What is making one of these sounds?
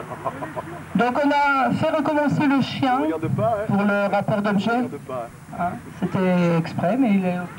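A woman speaks loudly and clearly into a microphone close by.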